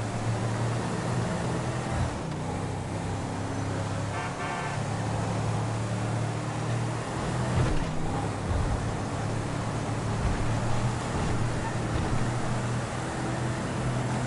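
A car engine hums steadily as the car drives fast down a road.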